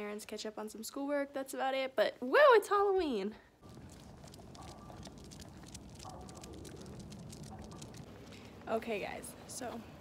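A young woman speaks animatedly close to the microphone, her voice rising and falling in a sing-song way.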